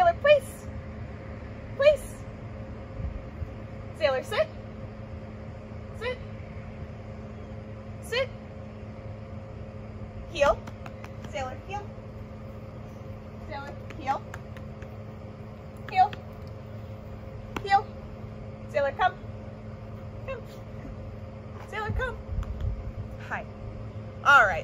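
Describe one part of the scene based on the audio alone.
A young woman nearby gives a dog short, upbeat commands outdoors.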